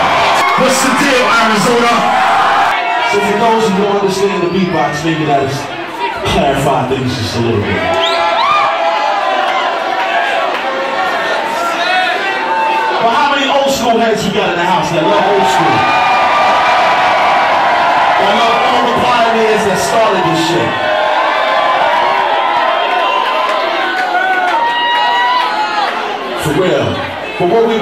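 A man beatboxes into a handheld microphone, heard through loudspeakers.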